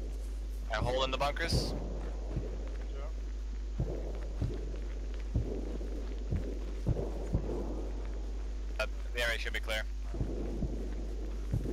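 Footsteps thud steadily on pavement.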